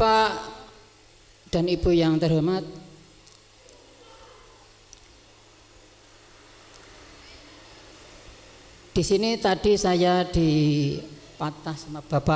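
A man speaks slowly into a microphone, heard through a loudspeaker with long pauses.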